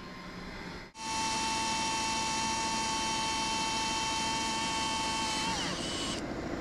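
A cordless drill whirs as it bores into metal.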